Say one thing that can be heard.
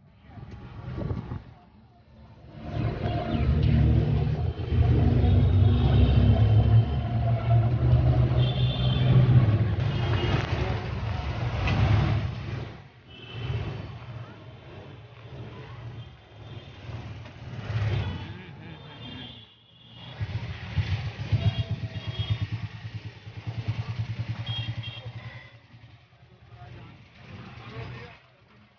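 Traffic rumbles past on a busy street.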